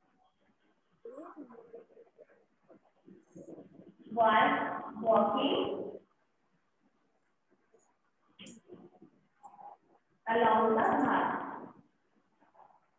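A woman speaks aloud.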